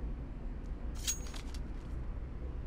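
A knife is drawn with a short metallic swish.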